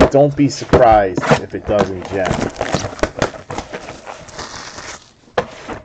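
Plastic wrapping crinkles as hands tear it open.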